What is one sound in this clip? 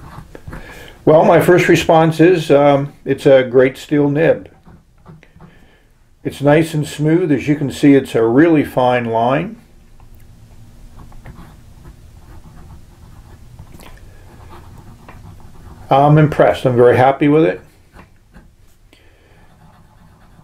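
A pen nib scratches softly across paper.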